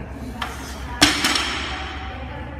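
Heavy weight plates crash onto the floor and clang with a ringing echo.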